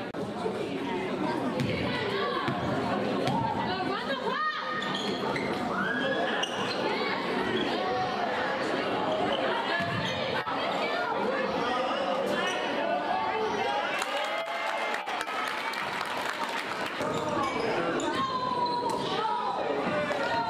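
A crowd of spectators chatters and cheers loudly in an echoing gym.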